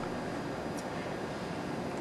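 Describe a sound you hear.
A pen writes on paper.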